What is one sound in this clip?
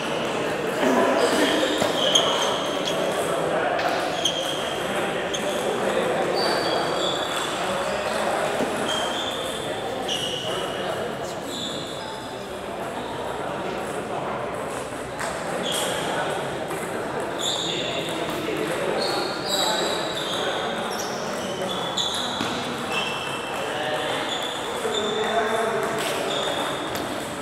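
Men talk in a low murmur in the background.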